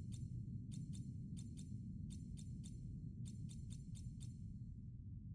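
Short electronic menu ticks click in quick bursts.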